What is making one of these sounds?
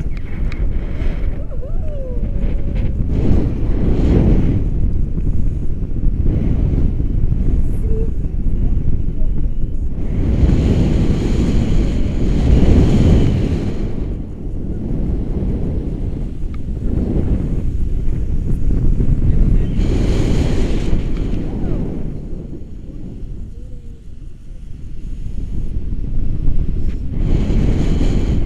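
Strong wind roars and buffets against a microphone outdoors.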